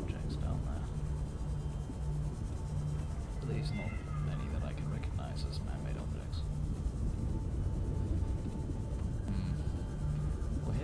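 A small submarine's engine hums with a low, pulsing throb underwater.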